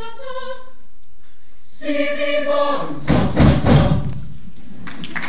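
A choir sings the last notes of a song.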